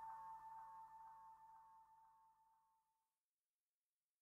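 A trumpet holds a long note and slowly fades away.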